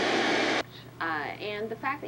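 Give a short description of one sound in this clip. A woman speaks calmly through a television speaker.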